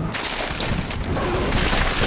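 A large winged creature screeches overhead.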